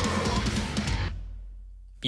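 Loud heavy music plays and then cuts off abruptly.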